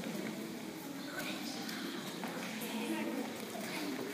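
Children's footsteps shuffle on a wooden floor.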